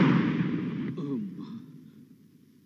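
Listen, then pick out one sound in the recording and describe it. A man gasps in a strained voice.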